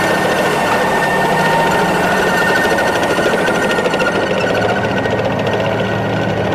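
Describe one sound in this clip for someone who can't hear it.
A heavy tracked vehicle's engine roars steadily close by.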